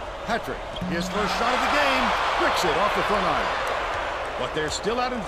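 A crowd cheers loudly, then dies down.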